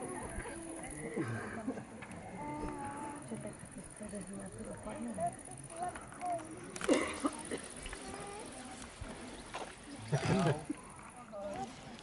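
Children and women talk and call out outdoors.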